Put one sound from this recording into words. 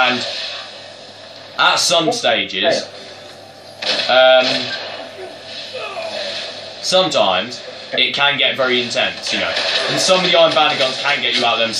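Gunshots and blasts from a video game play through a television speaker.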